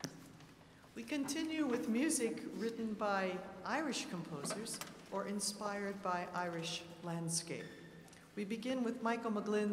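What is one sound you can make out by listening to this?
An orchestra's strings play.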